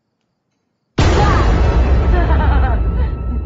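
An older woman laughs loudly up close.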